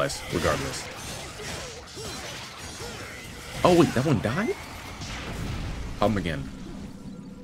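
Blades slash and clang in a fast fight, with sharp hits.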